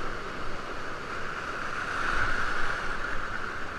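A paddle splashes into the water.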